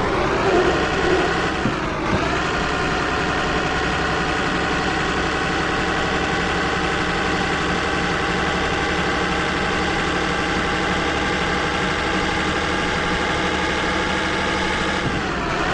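A heavy truck engine drones steadily, dipping briefly as it shifts gear, then rising again.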